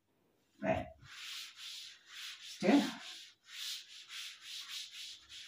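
A duster rubs across a chalkboard in quick strokes.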